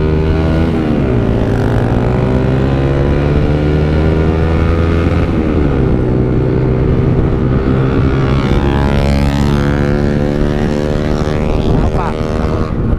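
Wind rushes past as the motorcycle rides.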